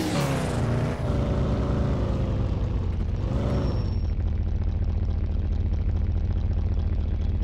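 A jet plane's engines drone steadily overhead.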